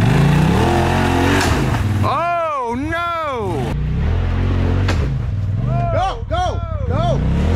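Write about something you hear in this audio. An off-road vehicle's engine rumbles and revs while climbing.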